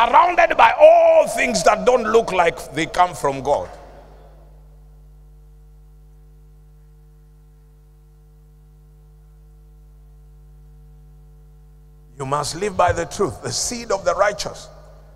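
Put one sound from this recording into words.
A middle-aged man preaches with passion through a microphone and loudspeakers, pausing in between.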